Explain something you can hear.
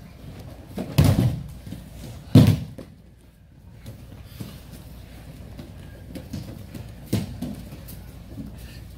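Bare feet shuffle and slide on a mat.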